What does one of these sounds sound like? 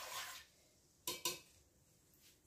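A whisk scrapes and stirs liquid in a metal pot.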